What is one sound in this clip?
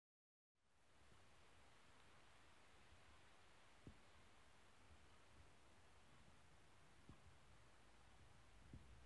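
A spinning gramophone record hisses and crackles under the needle.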